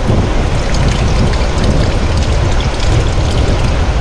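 Water pours from a plastic jug over a hand into a bucket of water.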